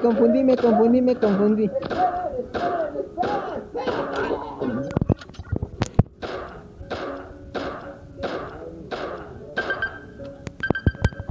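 A gun fires repeated shots at a steady pace.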